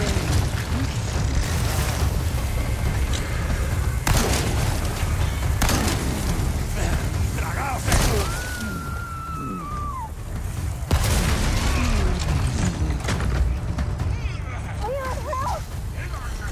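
A monster growls and roars.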